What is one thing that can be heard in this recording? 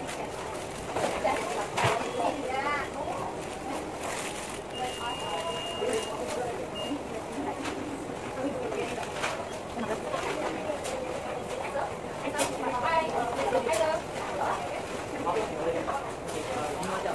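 A paper wrapper crinkles and rustles close by.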